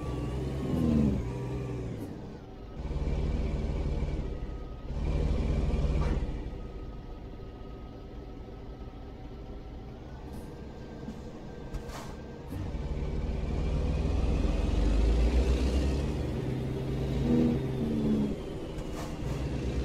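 A truck's diesel engine rumbles, swelling and easing as it drives.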